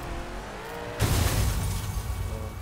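A car crashes with a loud, heavy impact.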